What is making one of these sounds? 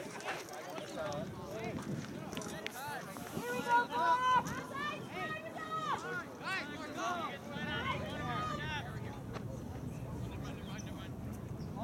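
Young players shout faintly across an open field outdoors.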